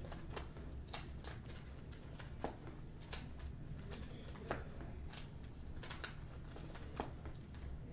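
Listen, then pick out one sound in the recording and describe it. Cards riffle and snap as they are shuffled by hand.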